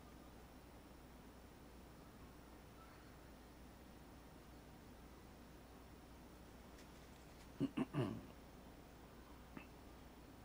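A paintbrush brushes softly against canvas.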